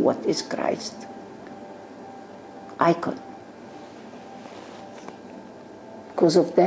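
An elderly woman speaks with feeling in short bursts, close by.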